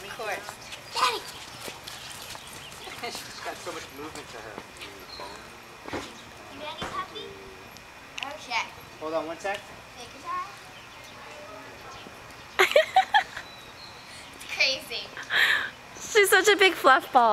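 A young girl talks and calls out nearby outdoors.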